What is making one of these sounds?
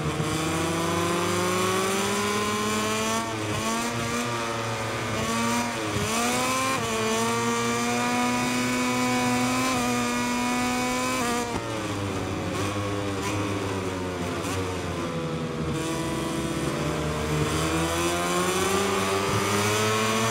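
A motorcycle engine screams at high revs, rising and dropping in pitch as gears shift.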